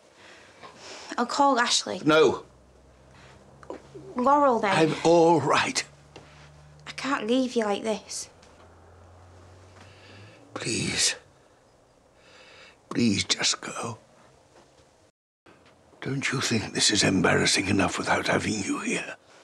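An elderly man speaks in a hoarse, agitated voice close by.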